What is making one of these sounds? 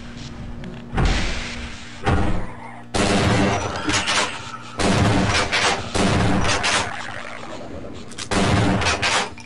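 A shotgun fires loud blasts several times.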